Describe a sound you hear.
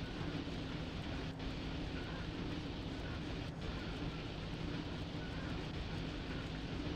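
Train wheels rumble steadily over the rails.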